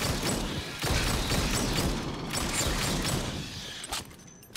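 A flamethrower roars.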